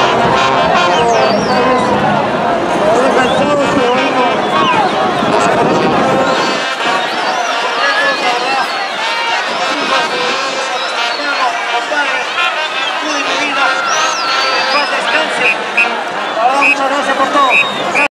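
Many voices of women and men chatter and call out nearby.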